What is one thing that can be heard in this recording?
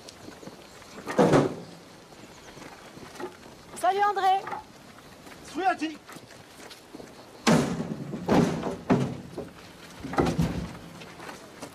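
Wooden logs thud as they are thrown onto a truck bed.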